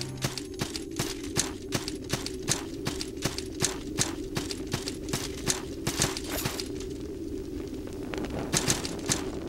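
Footsteps tap quickly and evenly on stone.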